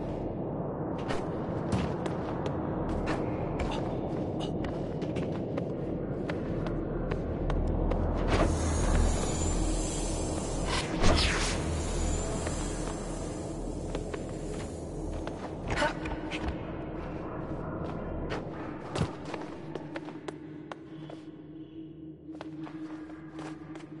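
Light footsteps patter quickly over stone.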